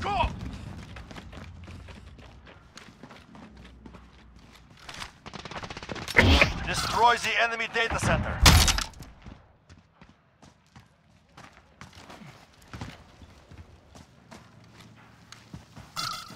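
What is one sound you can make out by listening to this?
Footsteps crunch over gravel and rubble at a quick pace.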